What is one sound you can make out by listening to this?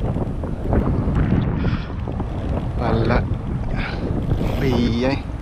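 Wind rumbles steadily outdoors over open water.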